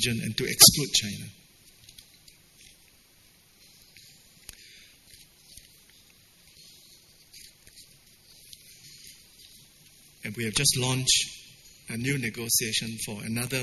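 An elderly man speaks into a microphone over a loudspeaker, with long pauses.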